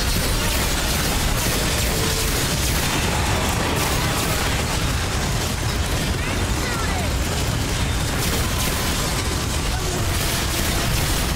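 An energy beam weapon fires with a loud continuous roar.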